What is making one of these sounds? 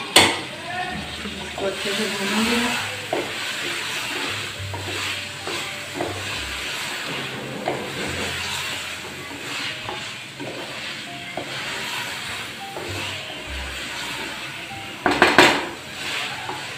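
A wooden spoon scrapes and stirs thick food in a metal pot.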